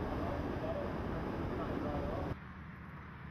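Strong wind roars through thrashing trees.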